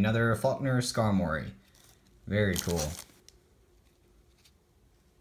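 Trading cards softly slide and rustle between fingers.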